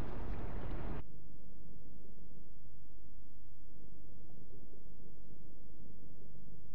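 A muffled, low underwater rumble drones on.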